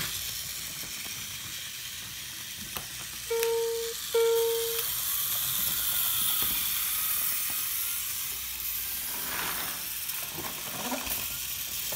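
Battery-powered toy trains whir steadily along plastic tracks.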